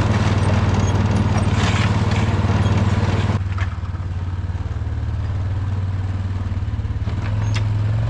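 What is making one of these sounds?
A small engine rumbles steadily close by.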